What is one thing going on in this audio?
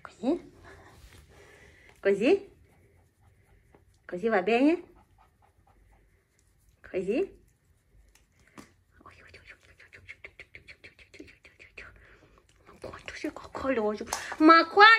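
A hand rubs and scratches a puppy's fur.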